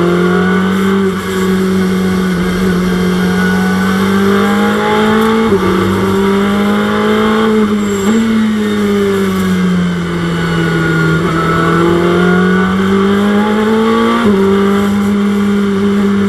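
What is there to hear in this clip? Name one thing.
A racing car engine roars loudly, rising and falling in pitch as it shifts gears.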